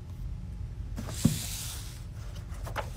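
Pages of a book riffle quickly.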